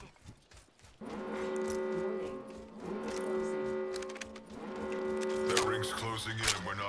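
A warning alarm tone sounds in repeated bursts.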